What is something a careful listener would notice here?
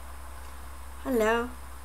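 A woman speaks briefly and warmly, close to a microphone.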